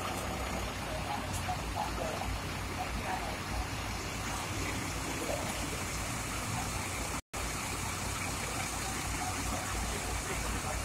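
A bus engine idles nearby with a low steady rumble.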